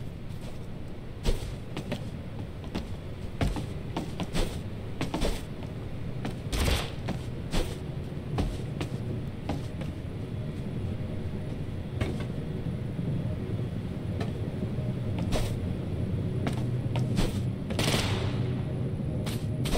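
Footsteps knock on wooden boards in quick, uneven bursts.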